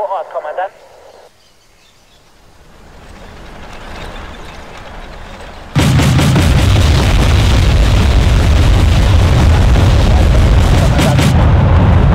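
A burning vehicle crackles.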